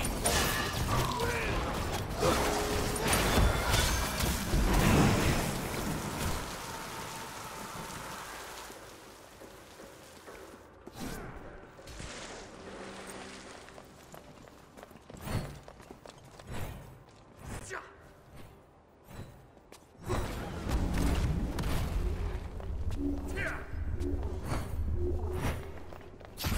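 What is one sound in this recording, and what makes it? Weapons strike with sharp hits.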